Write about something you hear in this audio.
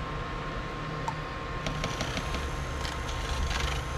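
A spoon taps and clinks against a cup.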